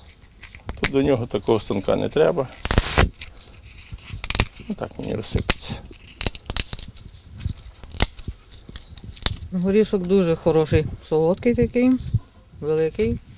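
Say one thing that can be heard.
A nutshell cracks and crunches between fingers.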